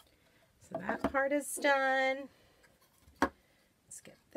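A small cardboard box knocks down onto a wooden tabletop.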